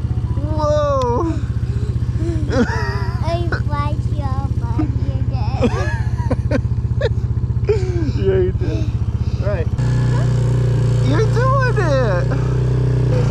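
A young girl talks excitedly, close by.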